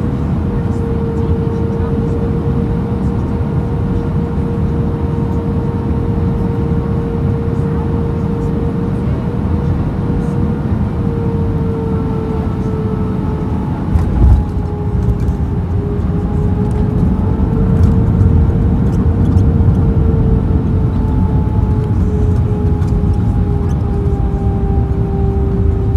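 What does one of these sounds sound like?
Jet engines hum and whine steadily inside a cabin.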